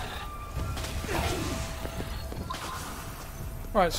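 Magic energy blasts crackle and burst.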